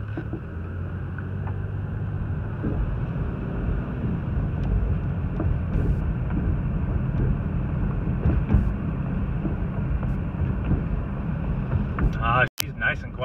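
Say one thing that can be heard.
Tyres rumble and crunch over a rough paved road.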